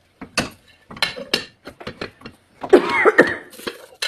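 A plate clatters onto a frying pan.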